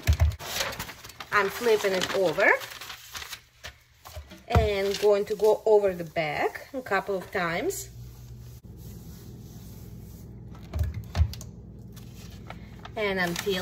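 Paper rustles as it is lifted and peeled back.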